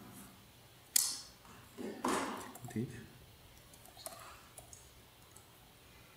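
Keys click on a computer keyboard as someone types.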